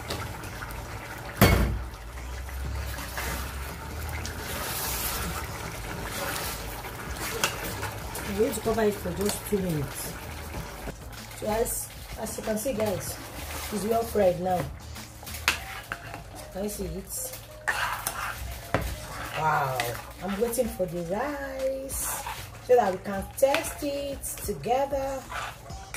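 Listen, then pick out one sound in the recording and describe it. A metal spoon stirs and scrapes inside a pot.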